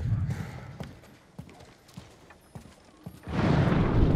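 Footsteps thud slowly on wooden boards.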